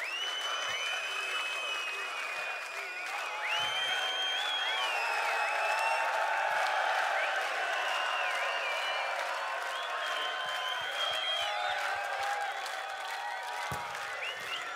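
A large crowd cheers and whistles loudly outdoors.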